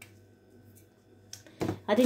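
A spoon stirs liquid in a glass bowl.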